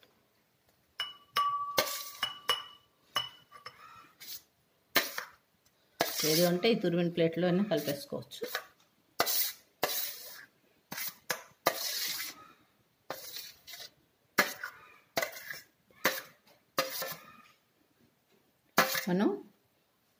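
A spoon scrapes and clinks against a metal plate.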